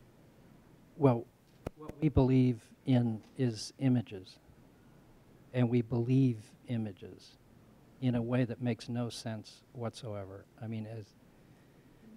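A man speaks calmly into a microphone, heard through a loudspeaker in a large room.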